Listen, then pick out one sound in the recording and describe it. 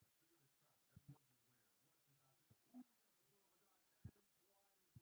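Soft clicks sound as menu tabs are switched.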